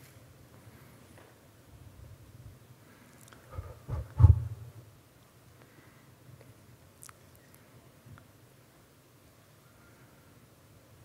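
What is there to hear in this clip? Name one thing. A man speaks quietly through a microphone.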